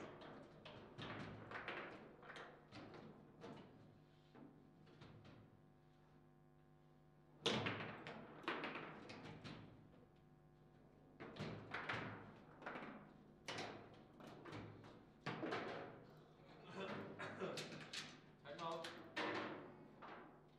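Rods rattle and spin in a foosball table.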